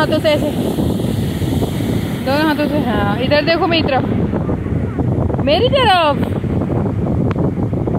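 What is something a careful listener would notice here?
Waves crash and roar steadily on the shore.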